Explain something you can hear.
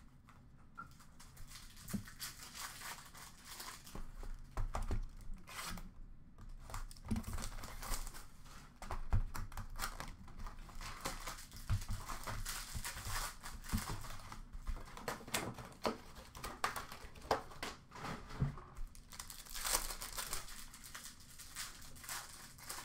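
Foil card wrappers crinkle and rustle close by.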